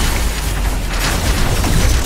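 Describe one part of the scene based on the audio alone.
Laser weapons fire with sharp electronic zaps.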